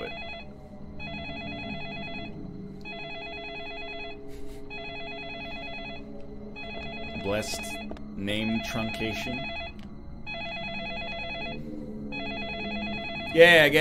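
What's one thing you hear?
A telephone rings over and over.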